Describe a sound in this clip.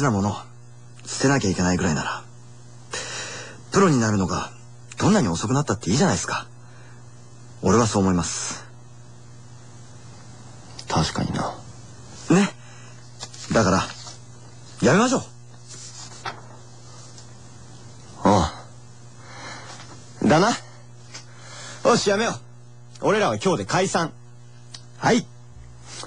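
Young men talk in short, lively bursts through a microphone.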